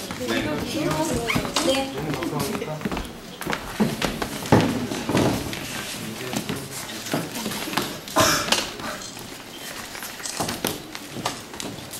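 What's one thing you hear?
Footsteps shuffle.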